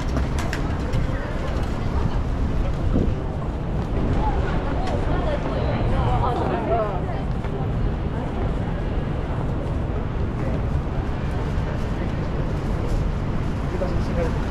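Voices of passers-by murmur nearby on the street.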